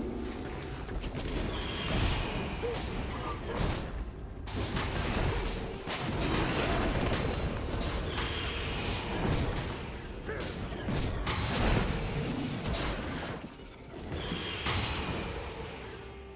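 Blows land with sharp impacts.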